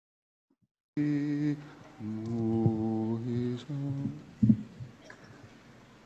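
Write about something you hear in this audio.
A large outdoor choir sings sustained chords and then stops.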